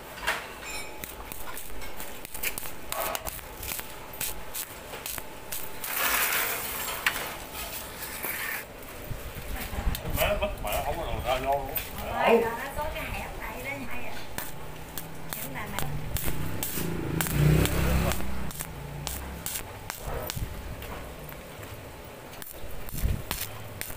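An electric arc welder crackles and hisses in short bursts.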